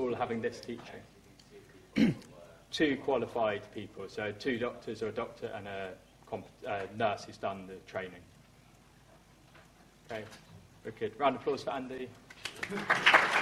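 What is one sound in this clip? A young man lectures through a microphone.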